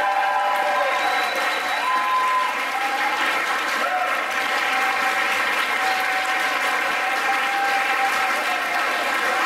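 An audience claps and cheers in a large echoing hall.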